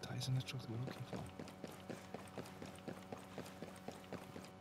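Heavy boots run quickly on a hard floor.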